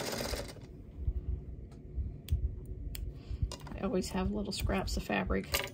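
Scissors snip thread with small sharp clicks.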